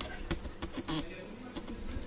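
Slices of bread scrape into a toaster.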